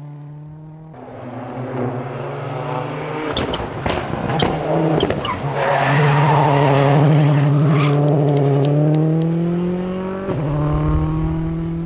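A rally car engine revs hard and pops through a bend.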